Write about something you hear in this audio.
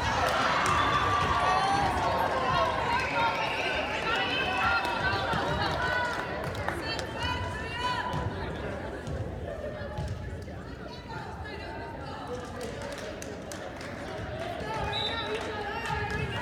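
Young women shout and cheer across a large echoing gym.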